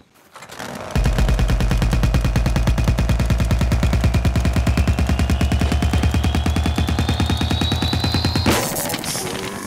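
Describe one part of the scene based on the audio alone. A rapid-fire gun rattles in a fast, steady burst.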